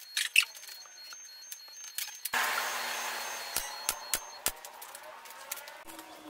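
A small power trimmer whirs against wood.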